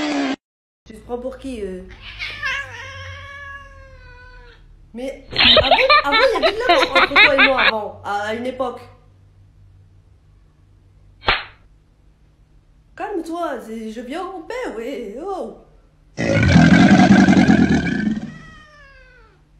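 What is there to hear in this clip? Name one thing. A young woman speaks with animation close by.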